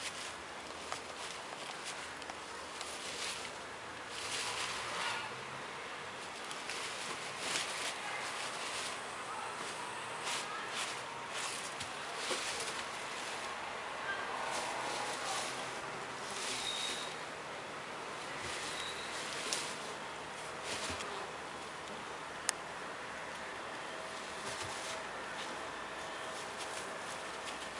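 A fox rustles and digs in dry hay close by.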